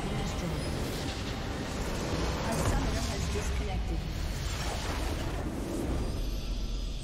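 A building explodes with a loud roaring crash in a game.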